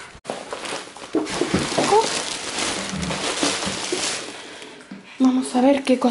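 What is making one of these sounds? A plastic bag rustles and crinkles up close.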